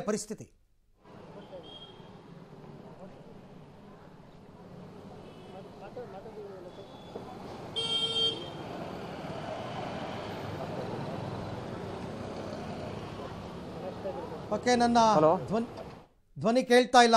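Street noise and distant voices murmur outdoors.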